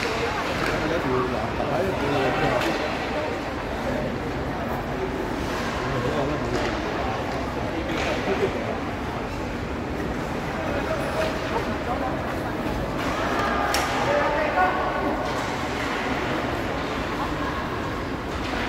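Ice skates scrape and hiss across the ice.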